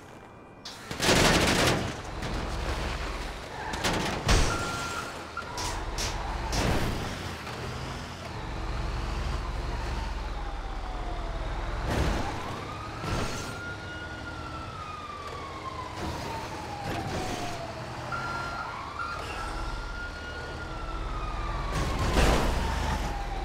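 Heavy thuds and crashes sound as a truck bumps over ledges.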